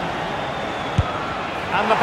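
A football is struck with a sharp thud.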